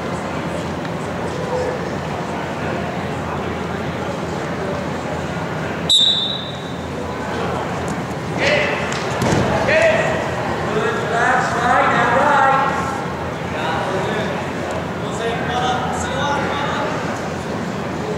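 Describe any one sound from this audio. Wrestlers' bodies thump and scuff on a mat.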